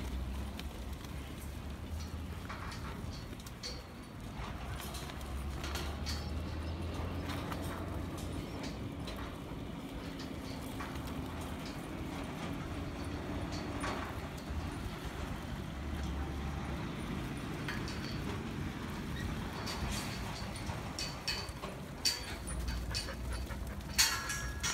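Sheep bleat now and then.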